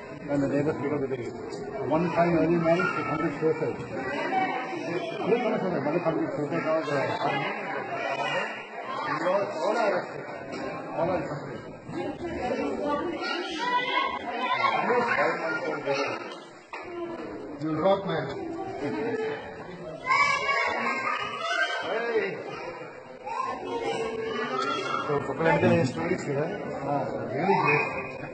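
Several men and women talk over one another loudly and with agitation, close by.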